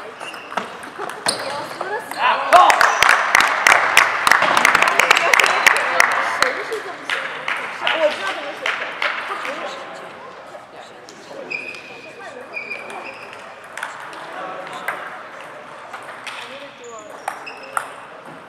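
A table tennis ball clicks back and forth off paddles and a table in a large echoing hall.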